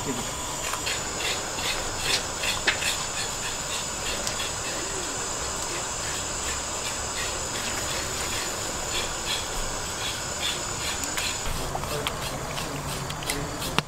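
A wood fire crackles and roars.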